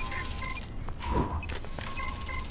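A short burst of energy fizzes and whooshes.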